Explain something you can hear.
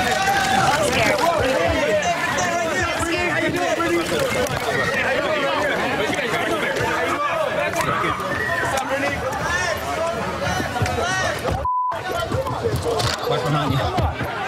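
A crowd of men and women shout and talk excitedly close by.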